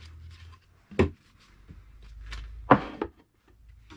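Wooden panels knock against each other.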